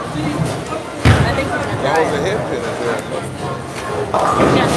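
A bowling ball thuds onto a lane and rolls away.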